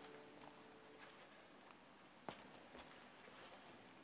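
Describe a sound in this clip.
Footsteps echo faintly across a large, reverberant hall.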